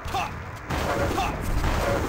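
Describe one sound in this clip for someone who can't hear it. A weapon fires with a crackling electric buzz.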